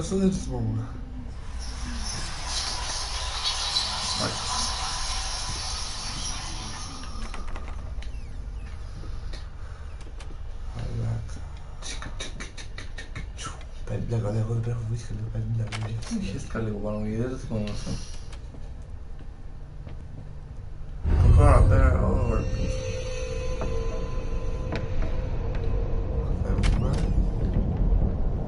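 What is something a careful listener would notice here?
Two young men talk with animation, close to a microphone.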